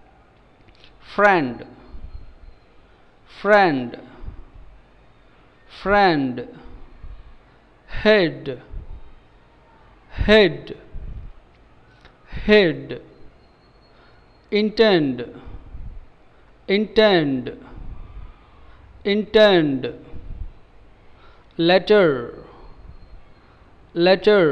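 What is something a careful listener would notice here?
A young man pronounces single words slowly and clearly into a close microphone, with short pauses between them.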